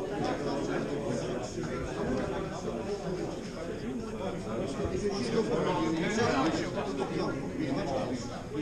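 Several men talk at once in a busy, murmuring room.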